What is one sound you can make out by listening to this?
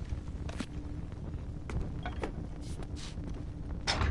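A torch flame crackles and roars softly.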